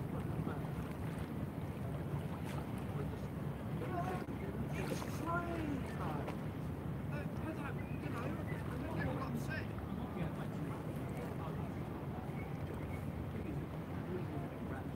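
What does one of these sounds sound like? Water laps gently against a wall.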